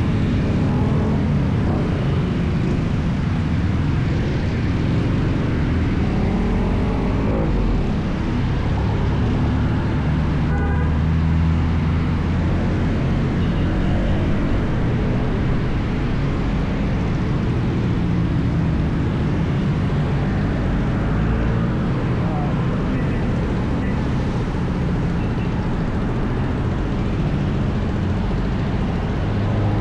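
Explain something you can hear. Traffic of cars and tricycles rumbles nearby.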